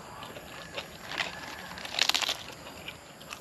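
Lettuce leaves crunch as they are torn.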